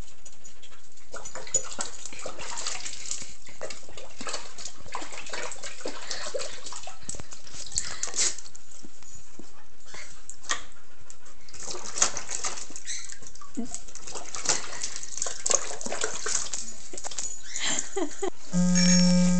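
A dog splashes its head about in a bucket of water.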